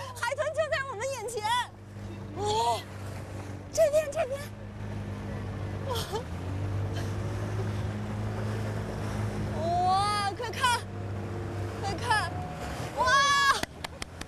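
A young woman exclaims excitedly close by.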